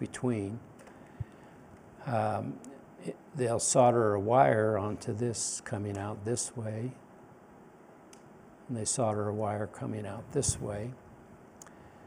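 An older man speaks calmly into a microphone, lecturing.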